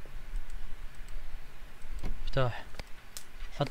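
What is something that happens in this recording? A car boot lid clicks open.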